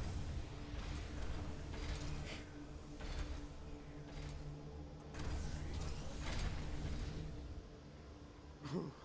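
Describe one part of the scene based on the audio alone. A glowing mechanism hums with a deep, steady rumble.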